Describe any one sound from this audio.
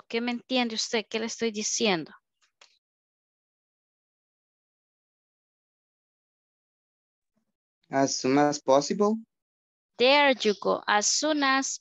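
A woman speaks with animation over an online call, pausing now and then.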